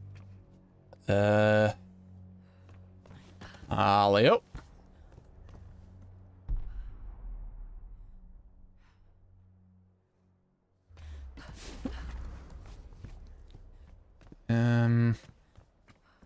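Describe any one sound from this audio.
A young woman grunts with effort while climbing.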